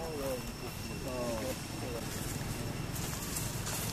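Leaves and branches rustle as a monkey moves in a tree.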